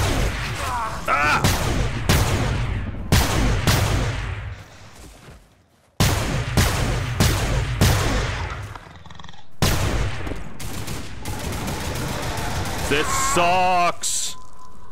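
A creature shrieks and screeches.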